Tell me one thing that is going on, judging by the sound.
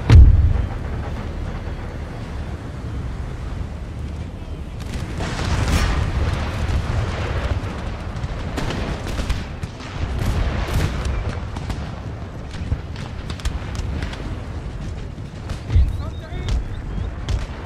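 Musket volleys crackle and boom in the distance.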